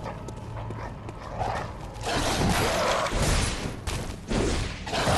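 Footsteps clatter on stone.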